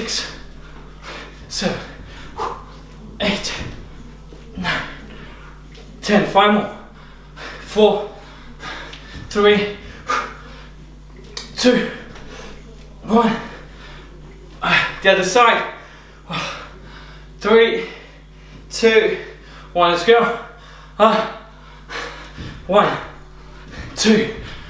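Feet thud and shuffle on a carpeted floor.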